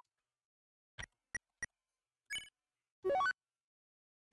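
Short menu clicks sound.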